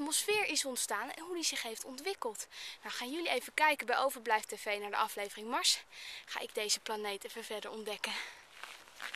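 A young woman talks up close with animation.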